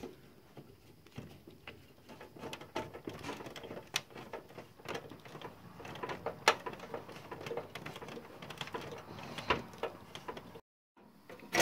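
A screwdriver scrapes and squeaks as it turns a screw in metal.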